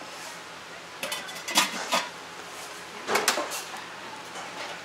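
A metal pot lid clanks shut.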